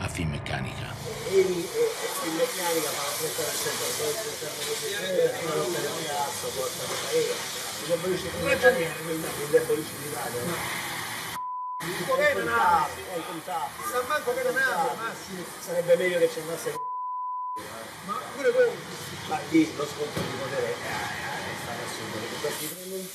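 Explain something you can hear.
A man talks casually, muffled and somewhat distant.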